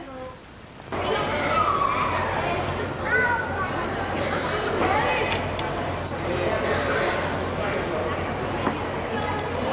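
A crowd murmurs and chatters in a large tent.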